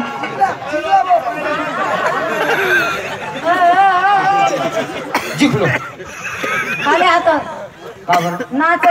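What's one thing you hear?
A man sings loudly through a microphone over loudspeakers with vibrato.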